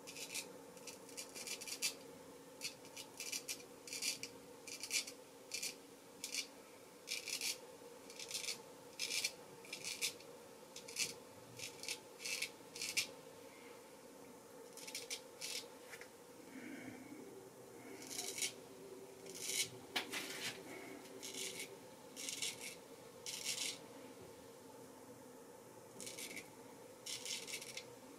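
A straight razor scrapes through stubble in short, rasping strokes, close by.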